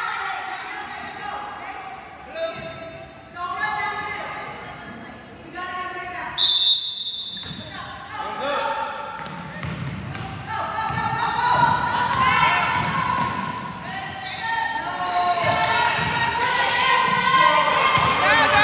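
Young women shout and call out across a large echoing hall.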